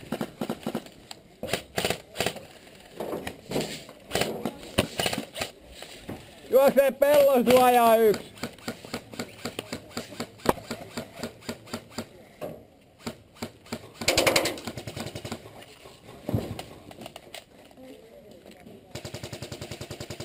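A paintball gun fires sharp, repeated pops close by.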